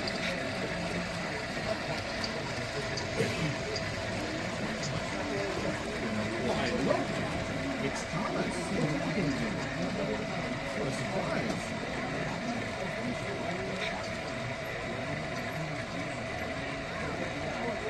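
Adults murmur and talk in a crowded room.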